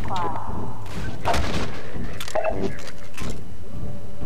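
A metal bar strikes a wooden crate with hard knocks.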